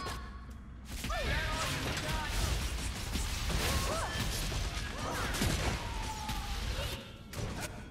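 Fiery blasts explode loudly in a fight.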